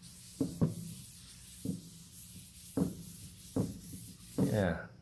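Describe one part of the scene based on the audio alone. A hand knocks lightly on a wooden board.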